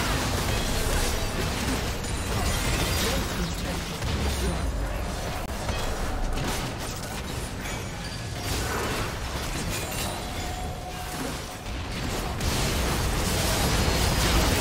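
Magic blasts crackle and boom in a fast video game battle.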